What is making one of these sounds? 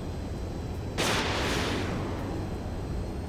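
A missile launches with a sudden rushing whoosh.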